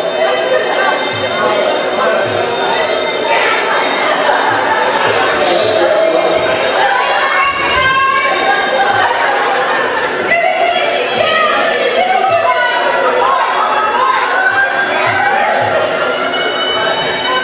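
A crowd of adults and children shouts and cheers nearby.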